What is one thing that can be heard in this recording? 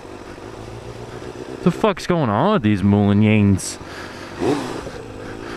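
A motorcycle engine hums low and steady.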